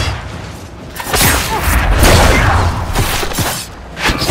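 A magic lightning spell crackles and booms in a video game battle.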